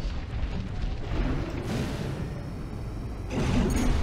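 Jet thrusters roar loudly as a machine boosts off the ground.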